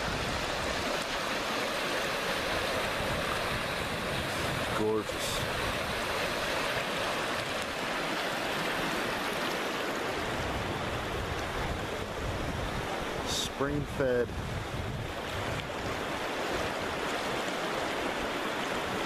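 A river rushes and churns steadily over rapids close by.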